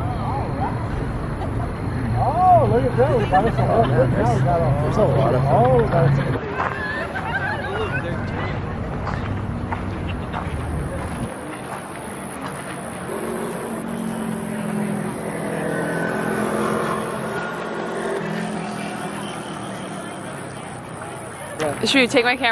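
A crowd chatters and murmurs nearby, outdoors.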